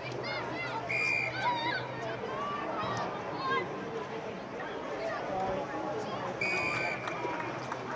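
A referee's whistle blows in short, sharp blasts.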